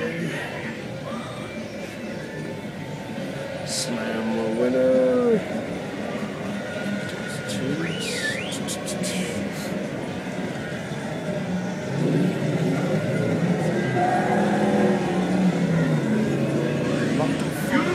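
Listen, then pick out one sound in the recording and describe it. Arcade machines chime and play electronic jingles.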